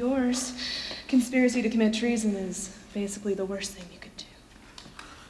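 A woman speaks dramatically.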